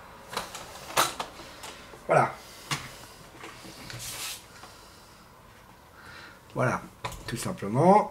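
A metal case panel clunks and rattles as it is handled.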